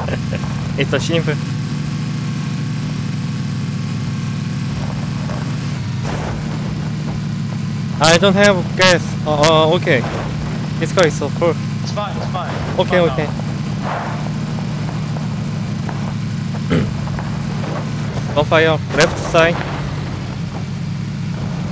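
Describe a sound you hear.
A vehicle engine drones steadily at a low pitch.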